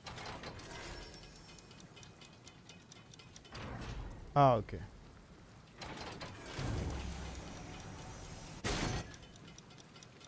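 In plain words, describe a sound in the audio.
Flames crackle and hiss in a brazier.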